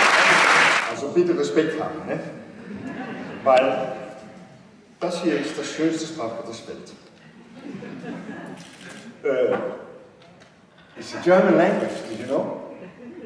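An older man reads aloud into a microphone.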